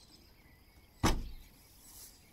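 A car's boot lid slams shut.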